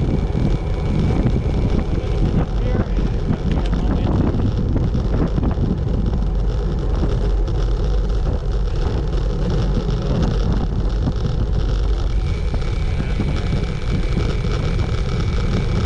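Wind rushes and buffets loudly, outdoors at speed.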